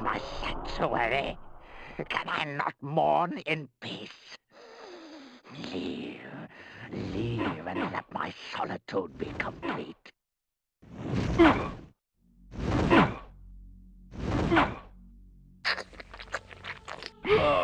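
Blades slash and strike in a fight.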